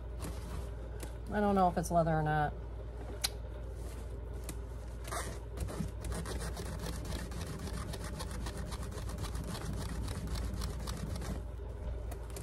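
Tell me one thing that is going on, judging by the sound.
Fabric rustles and crinkles as hands fold and tuck it.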